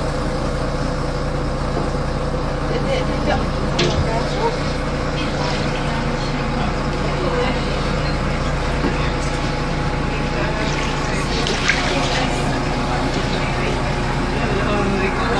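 Water sloshes across a flooded floor.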